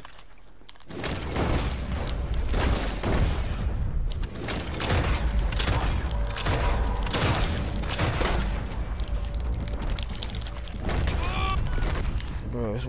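Gunshots ring out again and again, loud and close.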